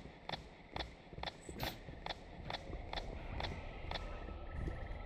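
Footsteps tap quickly on a wooden floor.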